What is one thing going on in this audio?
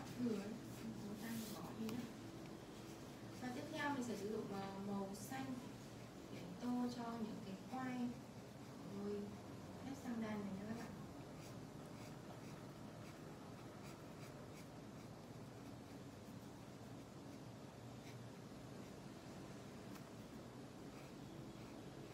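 A felt-tip marker squeaks and scratches softly on paper.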